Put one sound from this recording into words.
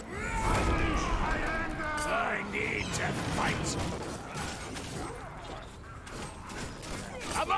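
Magic spells crackle and blast in quick bursts.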